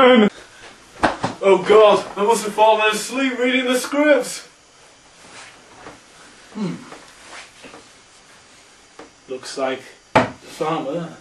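Young men talk with each other nearby.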